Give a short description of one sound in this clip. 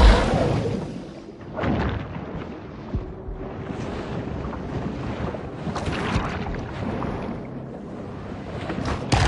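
Muffled underwater rumbling goes on softly.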